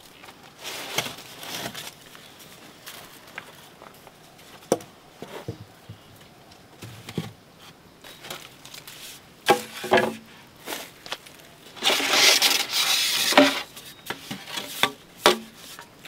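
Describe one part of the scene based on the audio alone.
Bamboo poles knock and scrape against each other and the ground.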